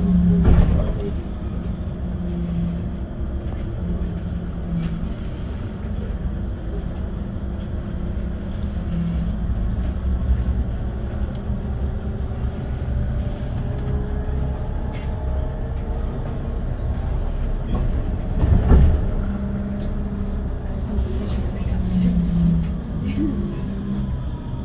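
A vehicle's engine hums steadily from inside as it drives along.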